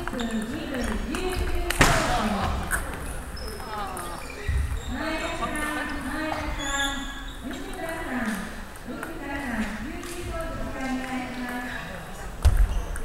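A young man talks nearby in an echoing hall.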